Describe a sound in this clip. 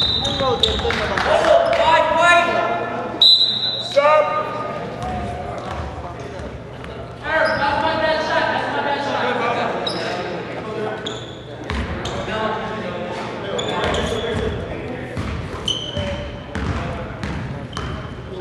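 Young men shout and call out to each other across the gym.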